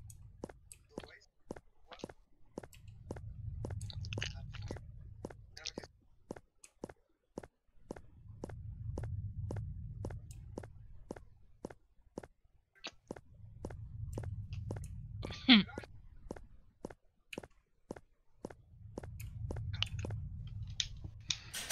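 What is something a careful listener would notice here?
Footsteps tap quickly and evenly on a hard path.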